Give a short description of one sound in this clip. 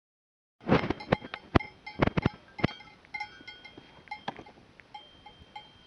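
Bells on grazing sheep clink and jingle.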